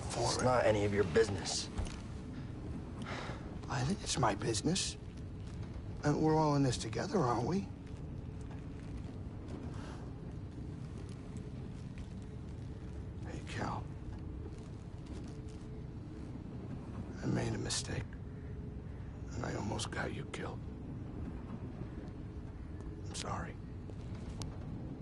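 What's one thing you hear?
A young man speaks quietly and apologetically, close by.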